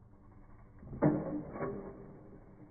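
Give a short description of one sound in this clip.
A bicycle thuds hard against a concrete wall.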